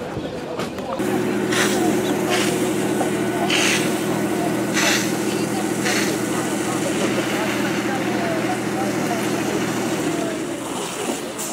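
Water hisses from a hose in strong bursts.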